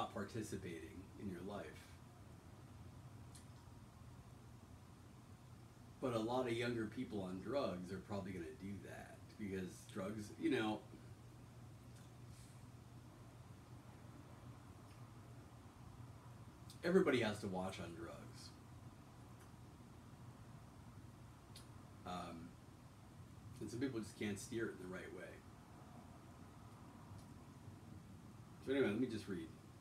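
A man speaks calmly in short bursts, close by, with pauses between.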